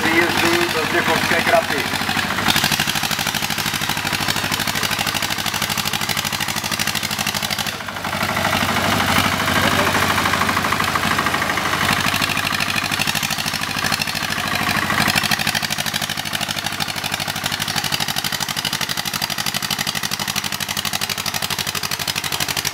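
A tractor engine chugs and labours loudly nearby.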